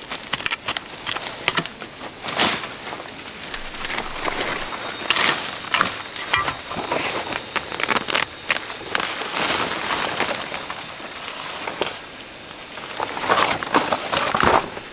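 Leafy plants rustle and stalks snap as they are pulled and broken.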